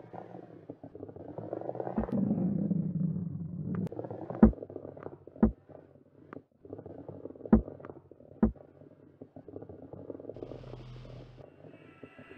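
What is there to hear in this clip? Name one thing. A heavy wooden ball rolls and rumbles along a track.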